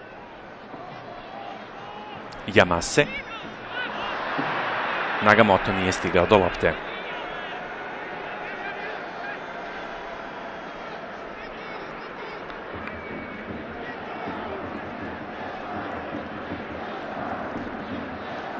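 A large stadium crowd murmurs and cheers throughout.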